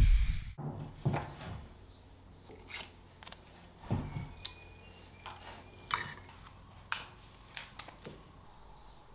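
Metal parts clink and tap together.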